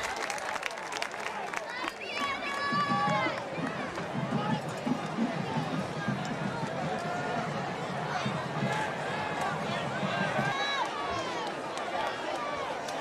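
A crowd of young men and spectators shouts and cheers outdoors.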